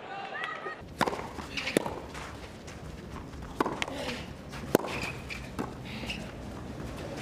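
A tennis ball is struck hard with a racket, back and forth.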